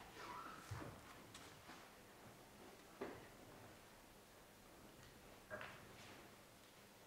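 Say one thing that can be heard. A man speaks calmly in a large, echoing room.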